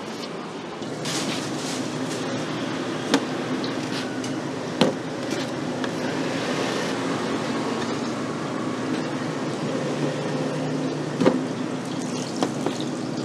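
A metal scraper knocks sharply against a metal counter now and then.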